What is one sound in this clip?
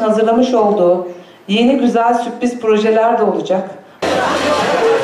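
A middle-aged woman speaks clearly into a microphone, heard through a loudspeaker.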